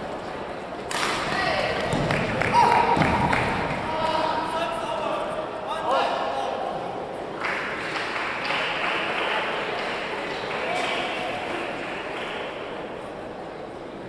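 Several men call out and chatter in the echoing hall.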